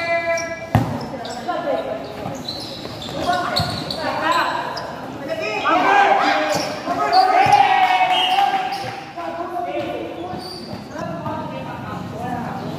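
A crowd of young people shouts and cheers in a large echoing hall.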